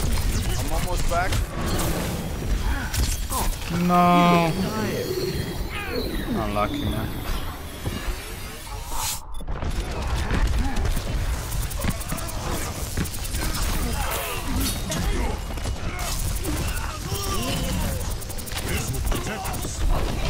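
An electric weapon crackles and zaps in bursts.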